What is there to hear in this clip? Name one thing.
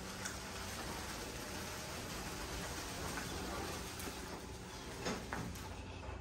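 A small electric cart hums softly as it rolls closer.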